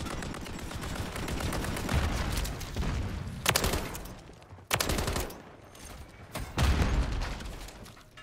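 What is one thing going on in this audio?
Gunfire from a video game crackles in rapid bursts.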